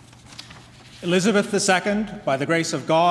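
A man reads out aloud through a microphone in a large echoing hall.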